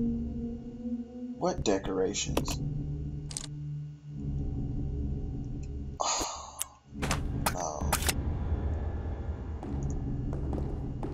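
A low, droning ambient hum plays.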